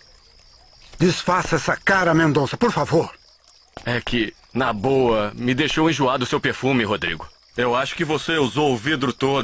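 A man speaks in a low, firm voice close by.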